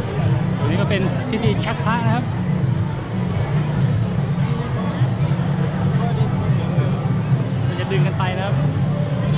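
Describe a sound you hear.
Women shout and call out with excitement nearby.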